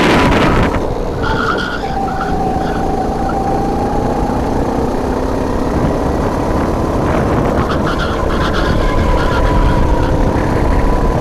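Wind buffets against the onboard microphone.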